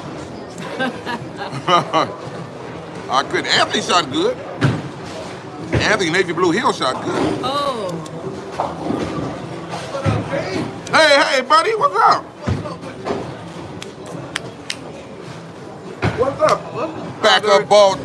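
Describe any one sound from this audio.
Men talk and shout with excitement.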